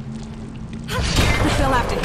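Magical spell blasts whoosh and crackle in a fight.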